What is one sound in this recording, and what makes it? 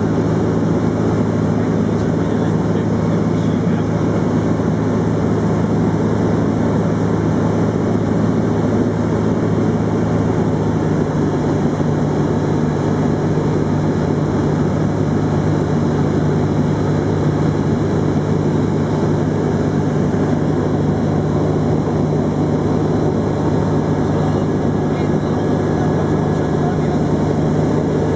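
A small aircraft engine drones loudly and steadily, shifting pitch slightly partway through.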